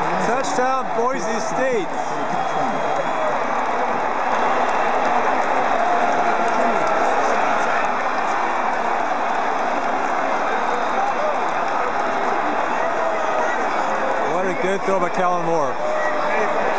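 Nearby fans shout and whoop excitedly.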